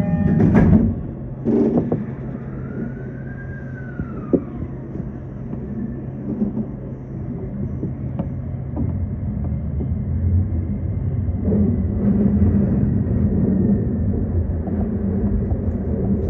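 A train rumbles steadily along the rails, growing louder as it picks up speed.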